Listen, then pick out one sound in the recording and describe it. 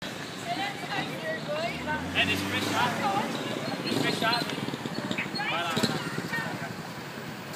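A group of young people talk and call out outdoors.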